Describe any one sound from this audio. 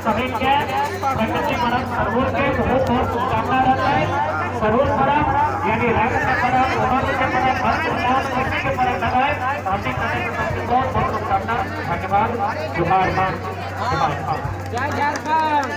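A man speaks forcefully into a microphone, heard through a loudspeaker.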